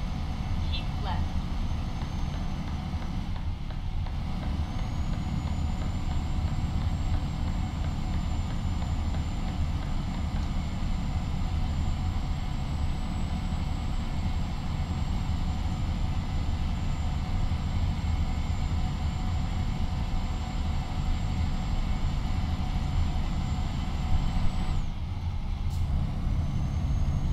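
Tyres roll with a steady low rumble on the road.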